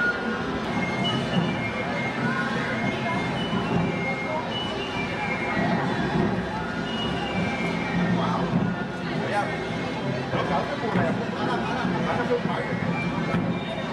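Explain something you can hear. A crowd murmurs and chatters along a street outdoors.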